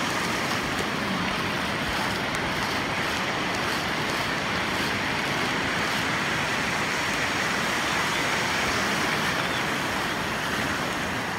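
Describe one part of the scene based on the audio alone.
Waves break and wash up onto the shore in a steady roar.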